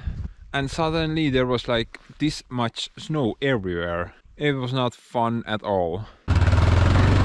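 A young man talks calmly and close up.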